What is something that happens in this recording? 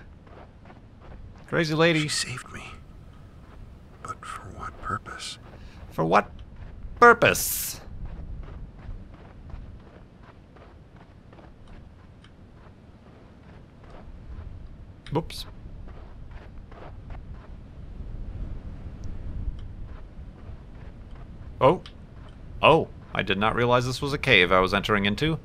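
Footsteps crunch steadily on loose ground.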